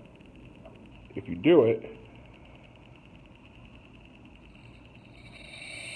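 Gas hisses softly as a lighter is refilled from a can.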